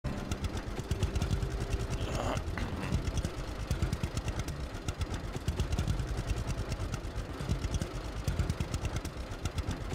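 An old tractor engine chugs steadily at low speed.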